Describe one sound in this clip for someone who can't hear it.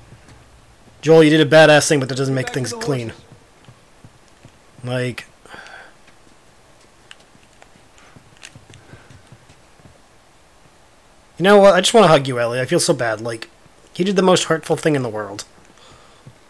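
A man talks animatedly, close to a microphone.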